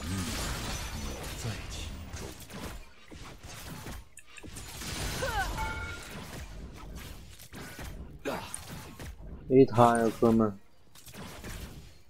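Game spells and attacks crackle and whoosh in quick bursts.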